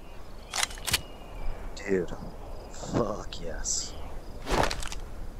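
Metal clicks and clatters as pistols are handled.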